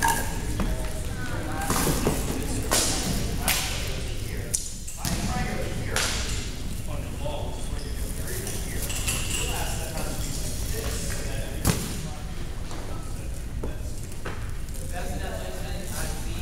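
Young women talk and call out in a large echoing hall.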